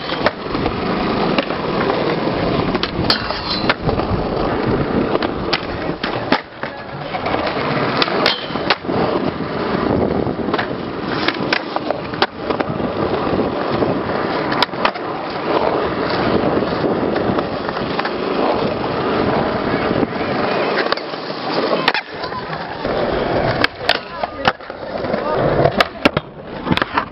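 A skateboard deck clacks and slaps onto concrete.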